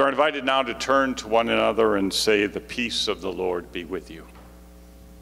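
A man speaks clearly through a microphone in a large echoing hall.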